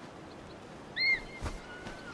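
An eagle gives a sharp, high screech.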